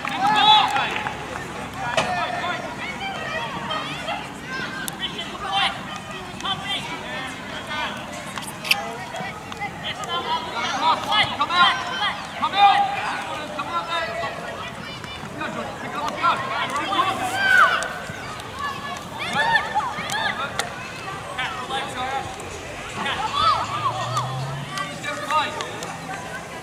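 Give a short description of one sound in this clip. Children shout and call out across an open pitch.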